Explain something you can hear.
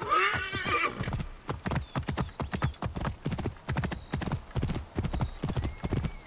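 Horse hooves clop at a quick, steady pace on dirt.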